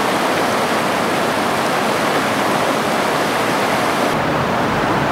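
Water rushes loudly over rapids.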